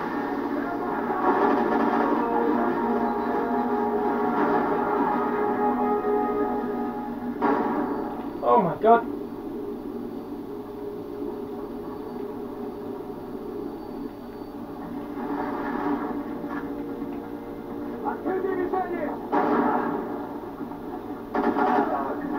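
Gunfire and explosions from a video game play through a television speaker.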